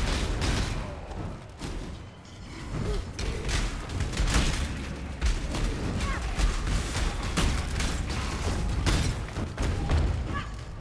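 Spell blasts crackle and burst in quick succession.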